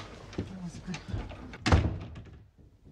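A door clicks shut.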